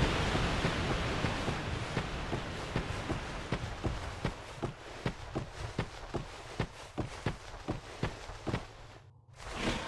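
Footsteps run steadily over dirt.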